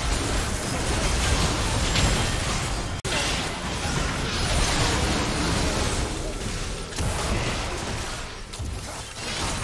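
Video game battle sounds crash and whoosh as spells hit.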